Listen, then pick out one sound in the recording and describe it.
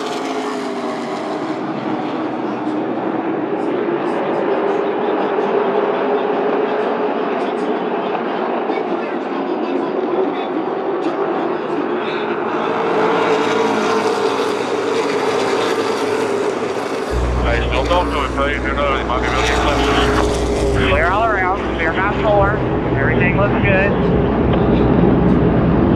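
Race car engines roar steadily.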